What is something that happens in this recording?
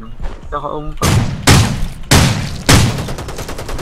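Gunshots ring out in a few loud bursts.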